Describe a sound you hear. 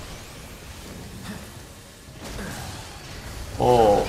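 A heavy machine crashes and explodes.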